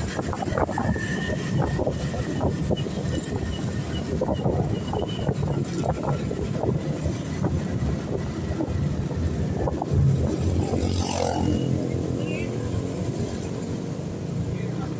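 A motorbike engine rumbles steadily while riding.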